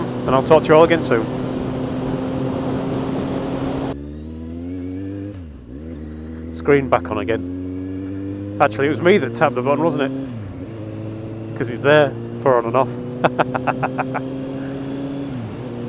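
A motorcycle engine hums steadily, its pitch rising and falling with the speed.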